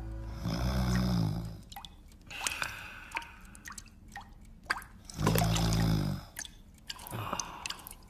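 Water pours and splashes into a metal pan.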